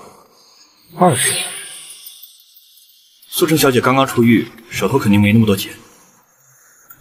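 A second young man answers calmly.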